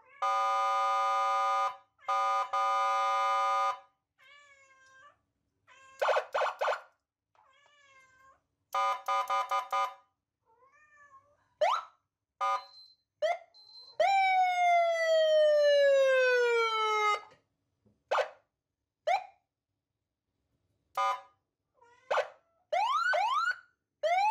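A small electronic speaker plays a string of beeps, warbles and swooping tones.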